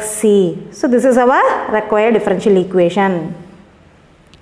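A woman speaks calmly, explaining.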